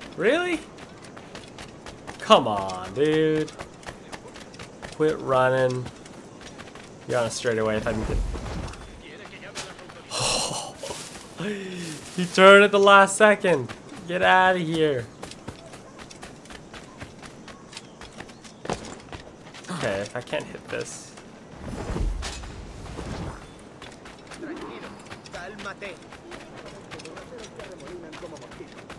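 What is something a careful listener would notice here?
Footsteps run quickly over stone and grass.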